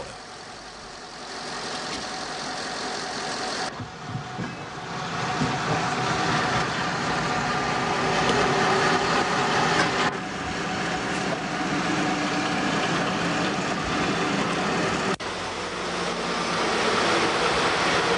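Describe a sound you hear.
A locomotive engine rumbles steadily as it drives.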